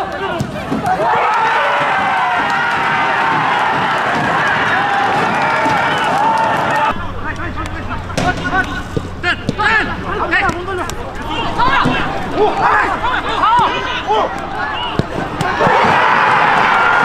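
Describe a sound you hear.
A stadium crowd cheers loudly.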